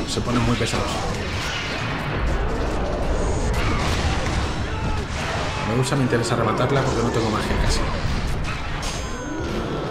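Monsters snarl and roar.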